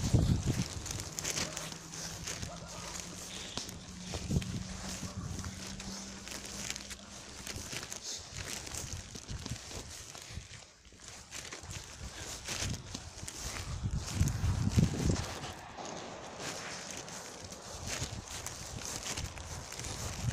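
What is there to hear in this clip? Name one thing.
Wind gusts across the microphone.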